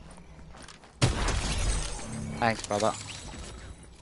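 A burst of gunfire rattles loudly.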